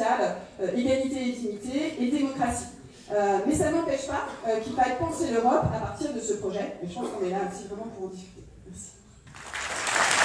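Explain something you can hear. A man speaks over a loudspeaker in a large hall.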